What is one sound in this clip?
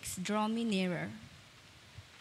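A young man and a young woman sing together through microphones in a large echoing hall.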